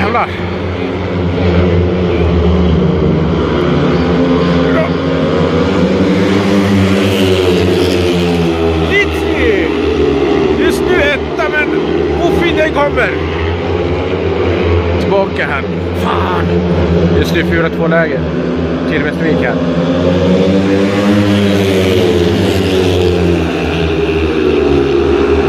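Several motorcycle engines roar loudly, rising and falling in pitch as the bikes race by.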